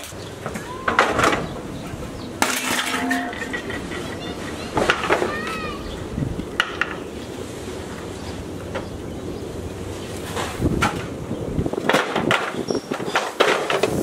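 Wooden furniture clatters and thumps as it is loaded onto a truck.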